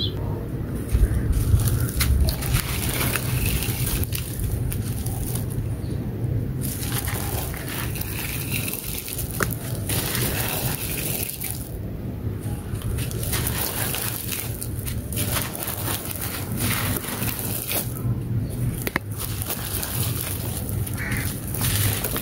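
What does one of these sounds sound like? Hands crush blocks of dry clay dirt, which crumble and crunch.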